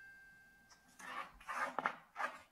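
A pencil rolls and scrapes on cardboard under a cat's paw.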